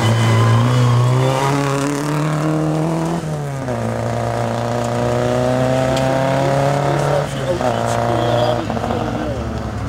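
Tyres crunch and spray gravel.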